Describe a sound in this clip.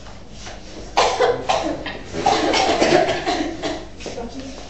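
A child cries out in mock pain, loud and close.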